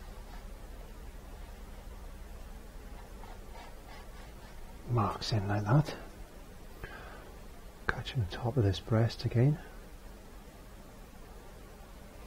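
A paintbrush strokes softly across canvas.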